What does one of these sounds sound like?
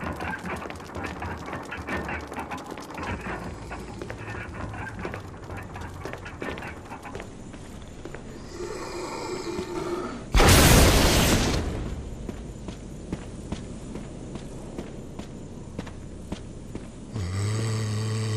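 Footsteps scuff on stone floors.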